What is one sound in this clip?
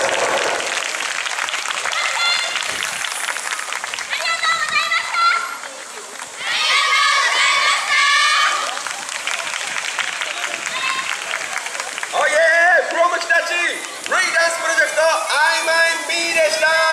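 A group of young girls chant loudly together outdoors.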